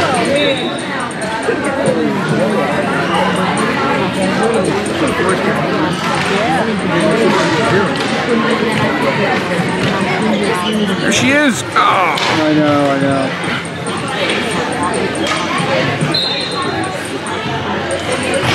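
Many young women chatter and call out in a large echoing hall.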